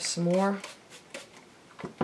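A spray bottle spritzes water.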